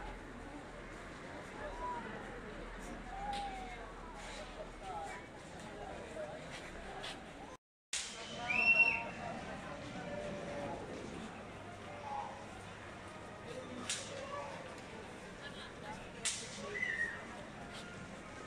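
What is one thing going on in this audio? A crowd of people chatters nearby outdoors.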